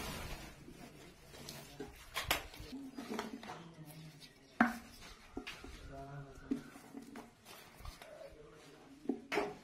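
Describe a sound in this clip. Paper rustles as hands fold and handle it.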